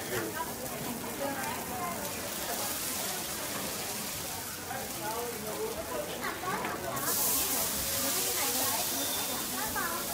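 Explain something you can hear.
Women talk with animation nearby.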